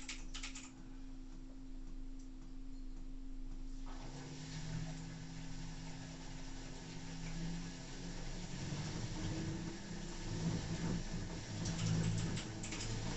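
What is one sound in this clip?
A washing machine drum turns with a steady hum.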